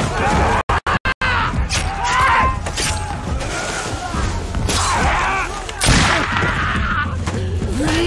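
Men shout and scream nearby in a fight.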